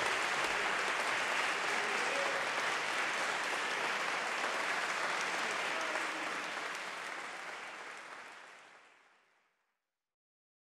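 An audience applauds steadily in a large echoing hall, then the applause fades away.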